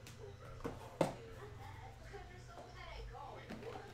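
A cardboard box is set down on a table.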